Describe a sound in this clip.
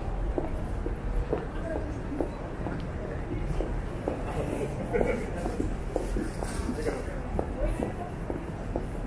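Footsteps tap steadily on pavement close by.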